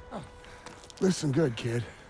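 A man speaks gruffly and firmly.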